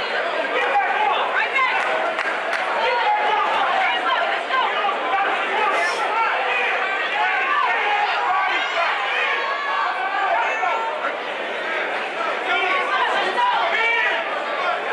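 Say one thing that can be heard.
A crowd shouts and cheers throughout in a large echoing hall.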